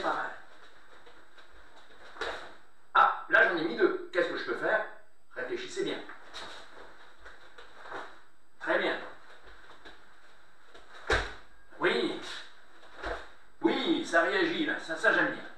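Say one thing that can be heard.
A middle-aged man speaks calmly and clearly to the listener.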